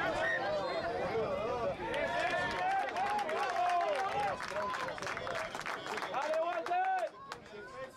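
A crowd of spectators shouts excitedly nearby.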